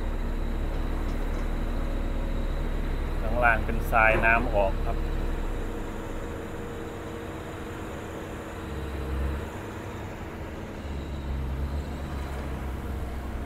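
An excavator bucket scrapes and dumps soil.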